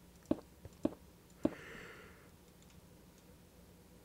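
A stone block is set down with a short, dull knock.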